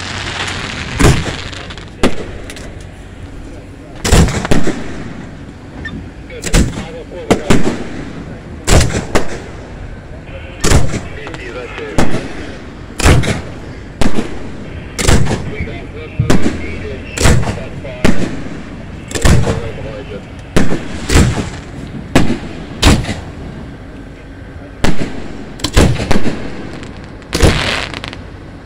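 Fireworks crackle and fizz as they burst.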